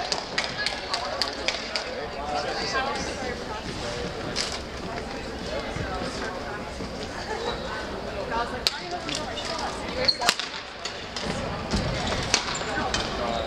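Shoes squeak on a wooden court.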